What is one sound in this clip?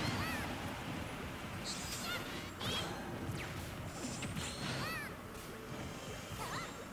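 Video game fighters trade blows with sharp thuds and blasts.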